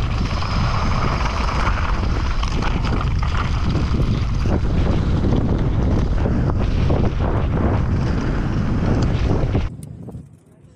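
A bicycle frame rattles and clanks over bumps.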